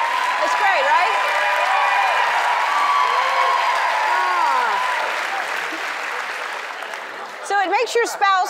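An audience laughs and cheers loudly in a large studio.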